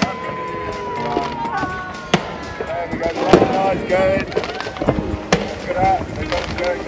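Fireworks whistle as they rise.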